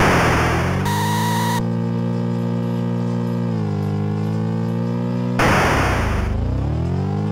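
A harsh electronic crash noise bursts out briefly.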